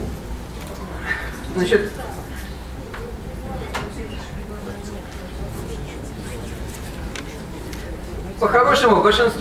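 An elderly man speaks into a microphone over loudspeakers in a large echoing hall.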